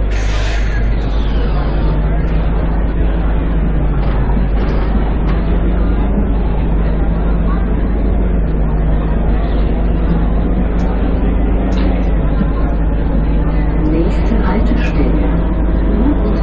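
A bus engine revs and pulls away, its drone rising and falling.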